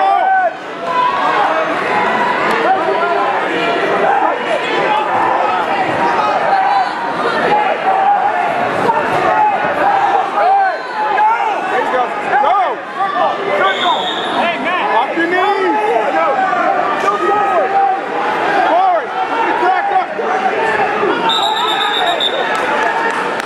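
A crowd of spectators shouts and cheers loudly in an echoing gym.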